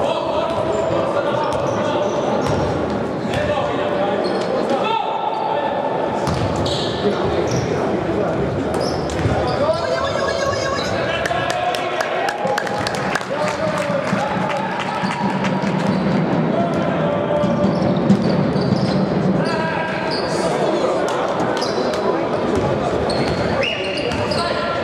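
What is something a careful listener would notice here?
A crowd of spectators cheers and chants in a large echoing hall.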